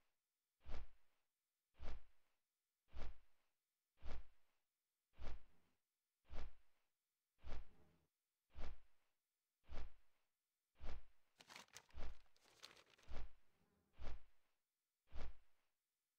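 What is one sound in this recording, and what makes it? Large wings beat with deep, heavy whooshes in a slow, steady rhythm.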